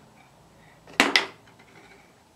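Small plastic game pieces click and knock on a tabletop game.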